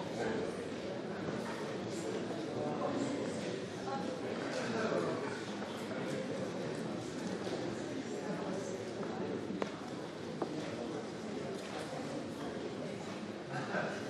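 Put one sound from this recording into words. A man speaks steadily into a microphone in a large echoing hall.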